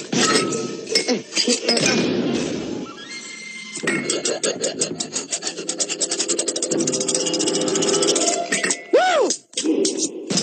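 Chopsticks clatter rapidly against ceramic bowls.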